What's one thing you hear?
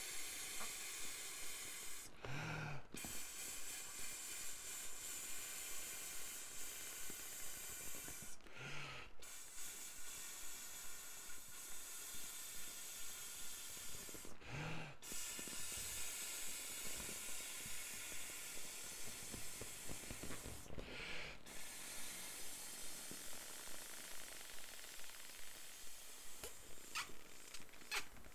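A man blows hard into an inflatable toy in long, steady breaths.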